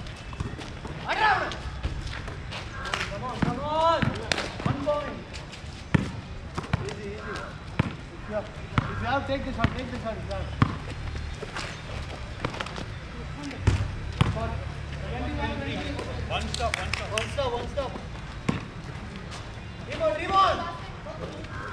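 Young men shout and call out to each other outdoors at a distance.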